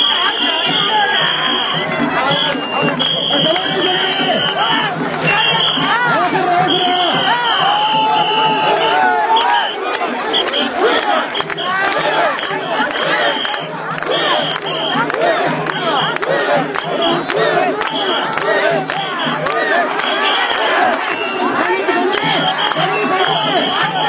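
A large crowd of men and women shout and chant loudly close by.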